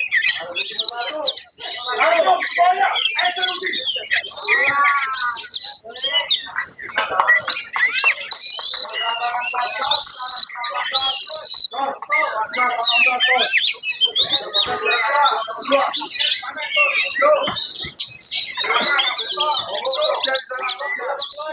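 An oriental magpie-robin sings a loud, varied song of fast whistles and rattles.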